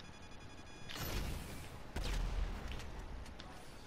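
A rocket launcher fires with a loud whoosh and a deep boom.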